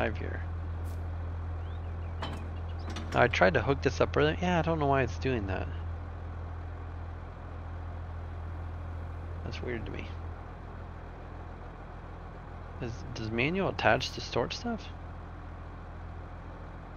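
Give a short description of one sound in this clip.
A tractor engine idles with a low, steady hum.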